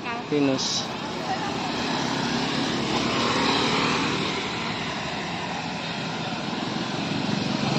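Motor scooters pass by on a street.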